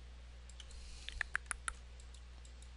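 Short clicking combat sound effects play in quick bursts.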